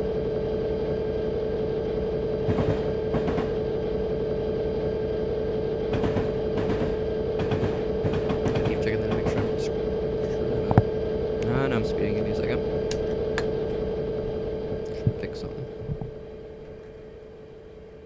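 A diesel locomotive engine drones steadily, then fades away.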